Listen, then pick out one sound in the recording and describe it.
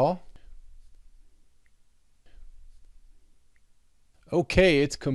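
A man speaks close to a microphone.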